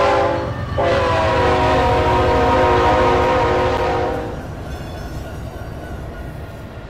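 A diesel locomotive engine roars as it passes close by.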